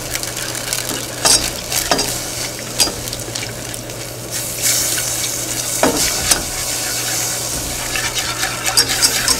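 Liquid pours and splashes into a pot.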